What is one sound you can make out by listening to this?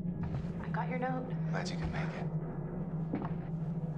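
A young man answers calmly, close by.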